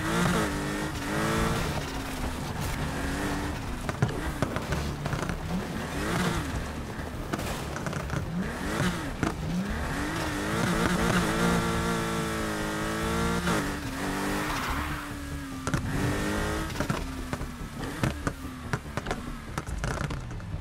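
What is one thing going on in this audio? A sports car engine roars and revs up and down as the car speeds along.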